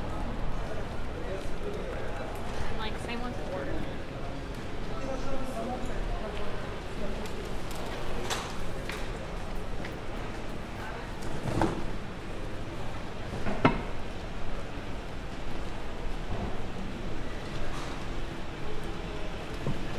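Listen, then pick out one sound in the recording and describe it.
Voices of passers-by murmur along a busy street outdoors.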